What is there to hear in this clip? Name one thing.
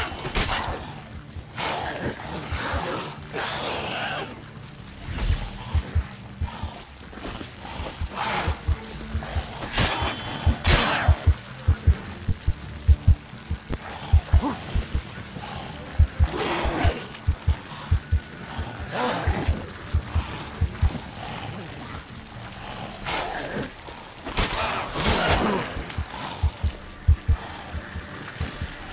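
A sword swings and slashes through the air.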